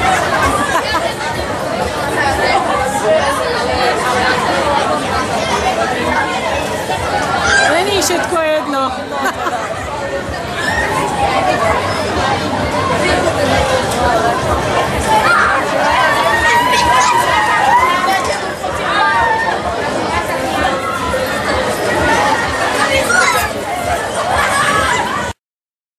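Riders on a spinning fairground ride scream and shout excitedly.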